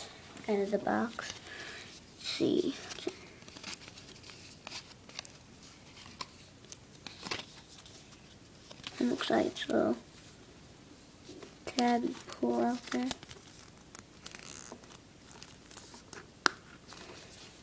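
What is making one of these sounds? A cardboard package and paper insert rustle and scrape as they are handled.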